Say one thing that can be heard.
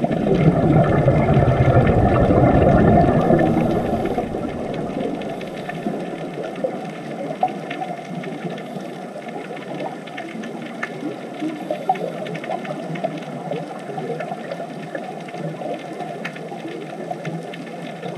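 Air bubbles from scuba divers gurgle underwater.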